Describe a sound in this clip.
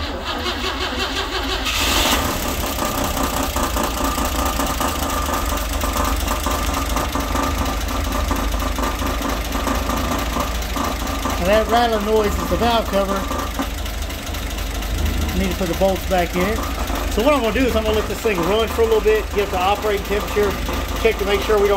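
An engine idles with a steady, rumbling clatter close by.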